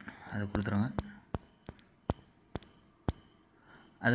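Phone keyboard keys click as digits are typed.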